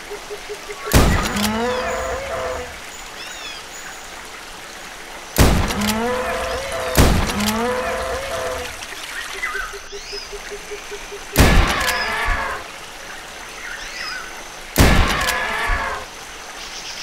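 A dinosaur roars and bellows.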